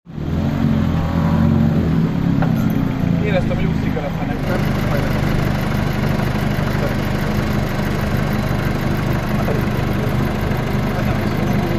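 A rally car engine idles with a low, steady rumble.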